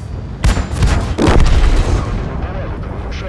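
A tank cannon fires with a loud blast.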